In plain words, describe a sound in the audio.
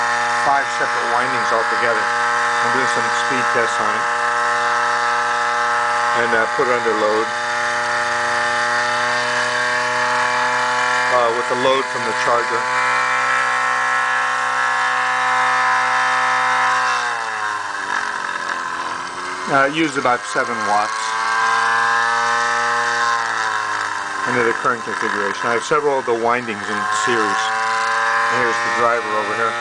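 An electric motor whirs with a steady, high hum that dips in pitch and then rises again.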